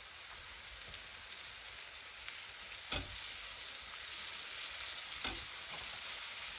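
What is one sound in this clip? Pieces of fish drop into a frying pan with soft thuds.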